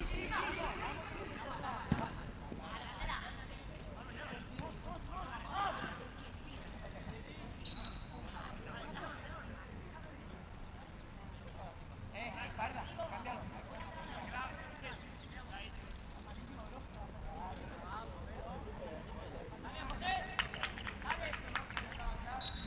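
Young men shout and call out across an open outdoor field in the distance.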